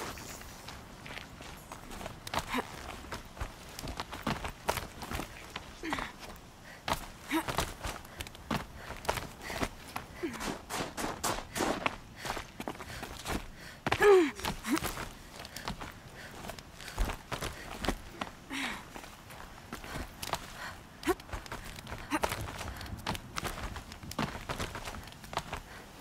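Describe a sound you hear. Hands and feet scrape and knock on rock while climbing.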